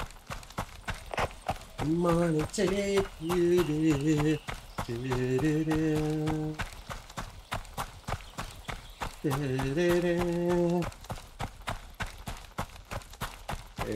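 Footsteps crunch steadily on gravel.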